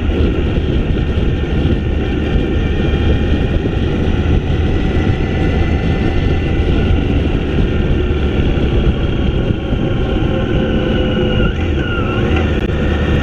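Wind rushes loudly past the rider.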